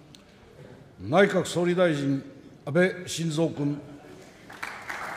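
An elderly man speaks formally into a microphone, heard through loudspeakers in a large hall.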